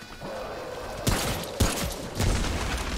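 A gun fires with sharp bangs that echo.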